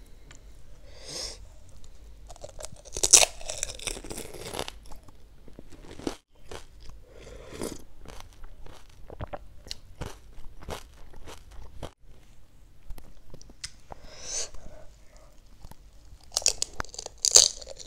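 A woman chews and slurps wetly, close to a microphone.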